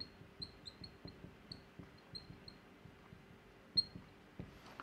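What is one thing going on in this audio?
A marker squeaks in short strokes on a whiteboard.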